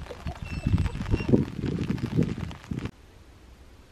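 Hens cluck nearby.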